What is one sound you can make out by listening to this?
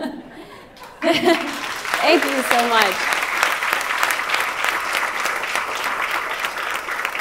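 An audience claps and cheers in a large room.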